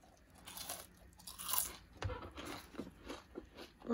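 A young man chews food with crunching close to the microphone.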